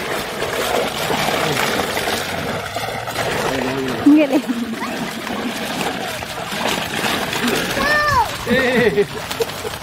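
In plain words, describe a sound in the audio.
Water splashes as men wade and haul a net through a stream.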